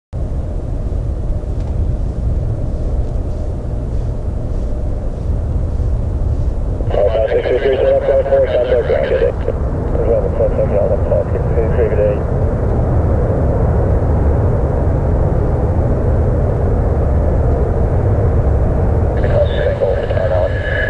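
A jet airliner roars far off as it takes off.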